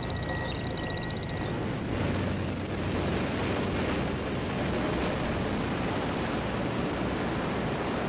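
Jet thrusters roar loudly and steadily.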